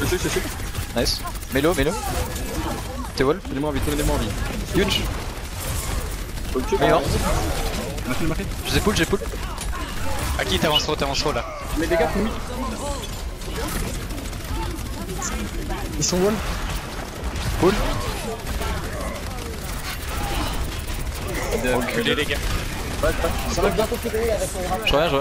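Game gunfire rattles in rapid bursts.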